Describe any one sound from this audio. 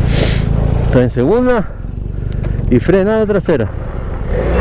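A motorcycle engine revs sharply up and down, twice.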